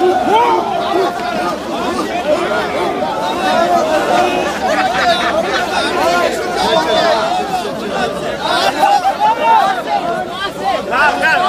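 Men scuffle and shove close by.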